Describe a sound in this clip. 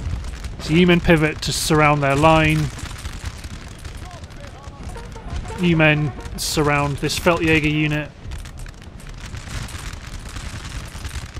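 Distant musket fire crackles in scattered volleys.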